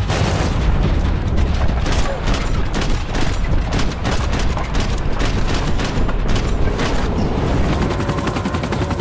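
A helicopter's rotor thumps loudly overhead.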